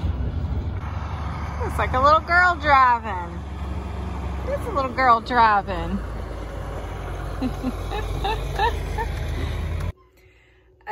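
A tractor engine rumbles outdoors.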